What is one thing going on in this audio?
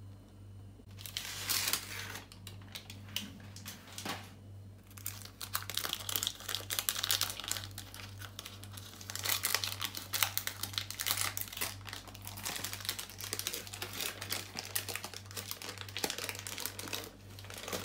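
Baking paper crinkles and rustles as hands peel it off a cake.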